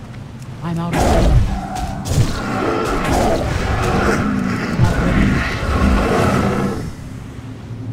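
Weapons clash and spells burst in a fight.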